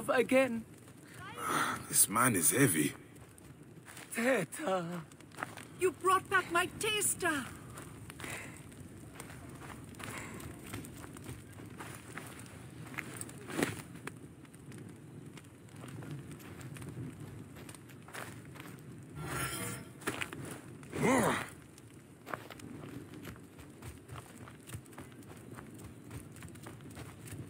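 Footsteps run over sandy ground.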